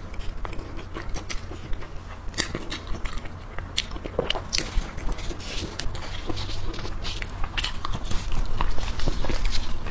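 A young woman chews and munches food close to a microphone.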